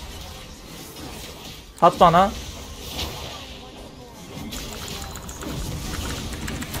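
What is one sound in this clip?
Video game spell effects whoosh and crackle.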